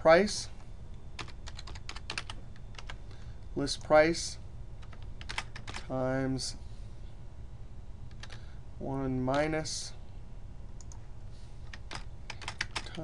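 Computer keys click in quick taps.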